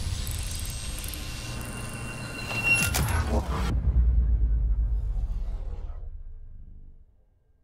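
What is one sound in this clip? Electric arcs crackle and buzz.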